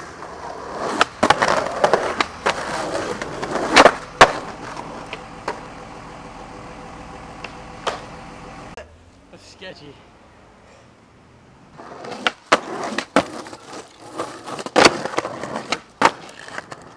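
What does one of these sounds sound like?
A skateboard clacks and snaps against concrete and pavement.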